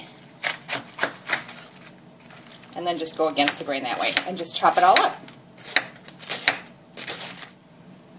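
A knife chops through cabbage on a wooden board.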